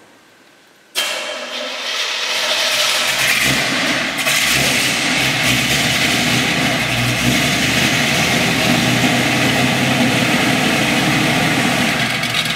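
A car engine runs with a loud, steady roar.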